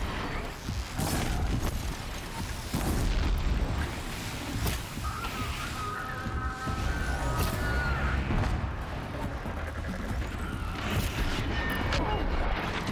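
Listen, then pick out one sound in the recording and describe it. Arrows whoosh and strike with sharp impacts.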